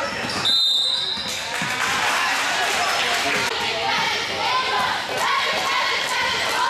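A crowd of spectators chatters and cheers in an echoing hall.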